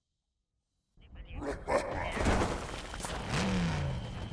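Loud computer game effects whoosh and clatter.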